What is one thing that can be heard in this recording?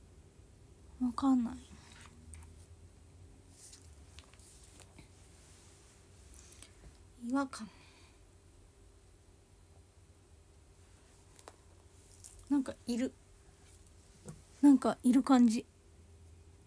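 A young woman speaks softly in short bursts, close by.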